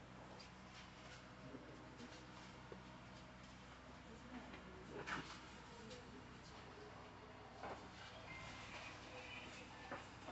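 Paper sheets rustle as they are handed out.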